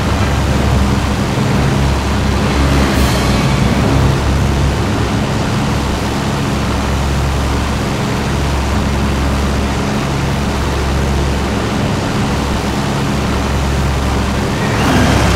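A propeller engine drones steadily and loudly.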